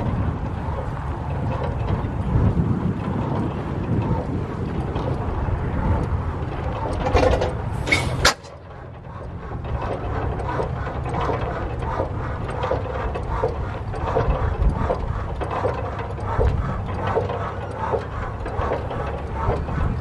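An old engine chugs with a slow, steady beat.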